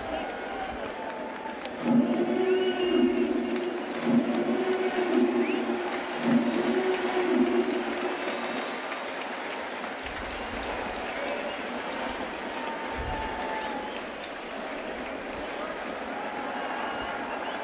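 A large stadium crowd murmurs and chatters steadily in the open air.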